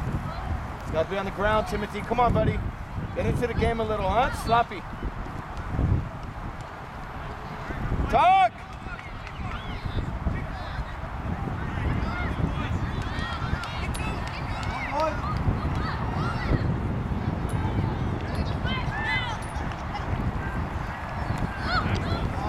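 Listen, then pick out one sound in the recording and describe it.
Children shout and call out across an open field.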